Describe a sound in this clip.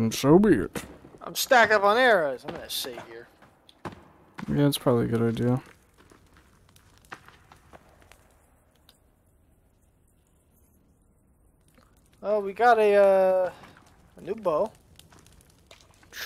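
A campfire crackles softly.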